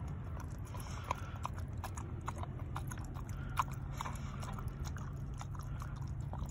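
A dog eats noisily from a metal bowl, with wet smacking and crunching.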